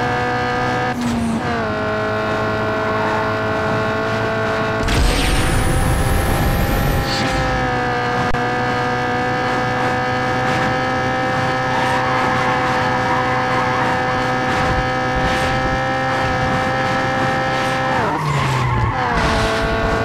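A car engine drops in pitch briefly as the gears shift.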